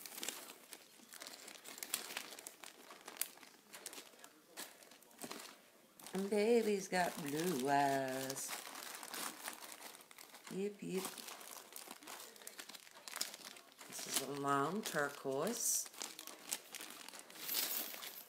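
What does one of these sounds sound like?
Plastic crinkles as a woman handles a small bag.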